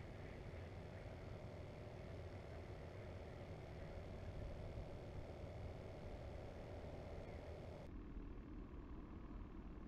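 Wind rumbles steadily across the microphone outdoors on open water.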